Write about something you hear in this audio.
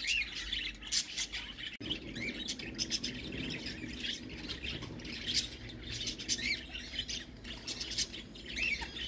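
A budgerigar chirps and chatters softly nearby.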